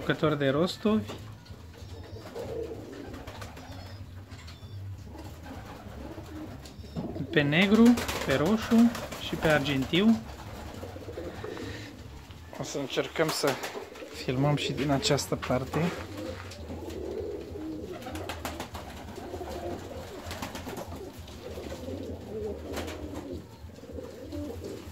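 Pigeons coo in low, soft, rolling murmurs.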